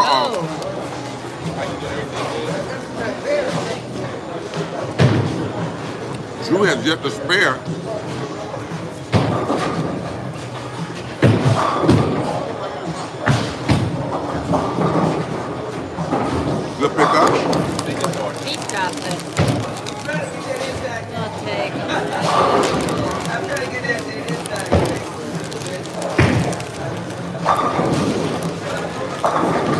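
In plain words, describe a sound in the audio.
A crowd of men chatter in a large echoing hall.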